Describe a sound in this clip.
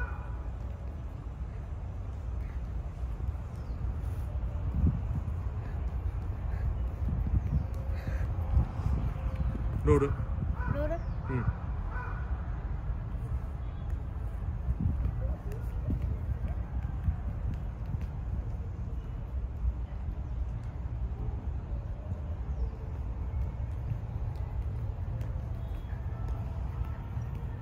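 A football thuds softly as a child kicks and taps it.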